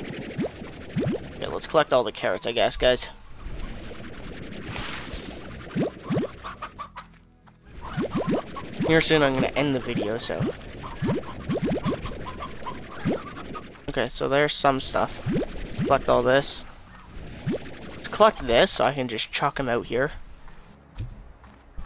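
Small objects pop quickly one after another as they are sucked in.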